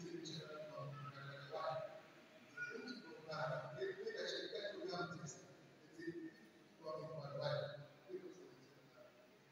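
A man speaks steadily in a large echoing hall.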